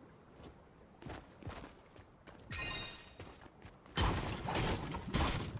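A pickaxe swings and strikes with loud thuds.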